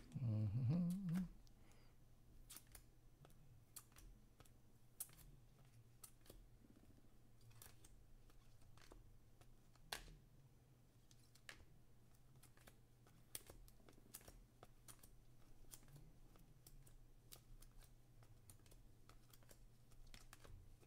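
Trading cards flick and snap as they are shuffled by hand.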